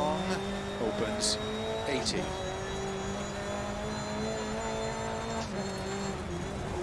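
A rally car engine drones steadily, with brief shifts in pitch.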